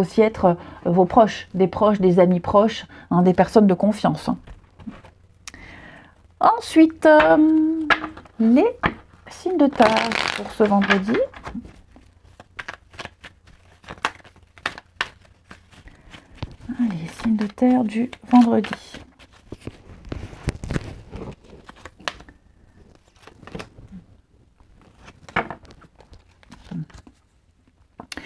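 Playing cards riffle and shuffle in the hands.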